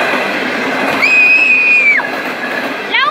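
A train horn sounds a steady blast.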